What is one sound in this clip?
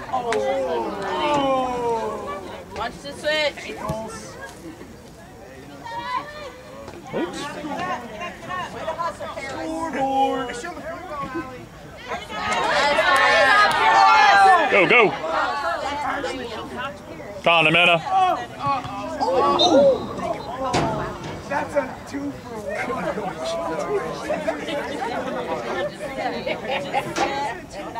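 Adult spectators talk and cheer close by.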